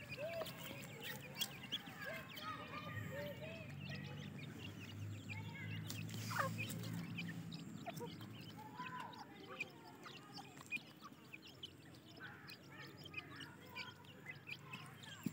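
Small chicks cheep in short high peeps.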